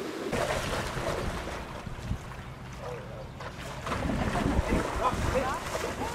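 A dog splashes as it swims through shallow water.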